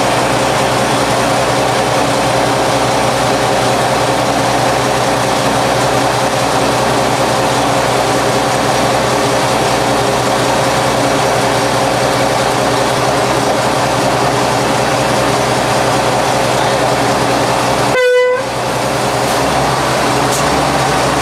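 A diesel locomotive engine idles with a steady, throbbing rumble.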